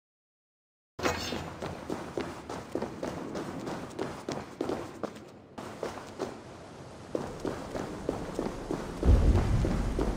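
Footsteps run quickly over stone and dirt.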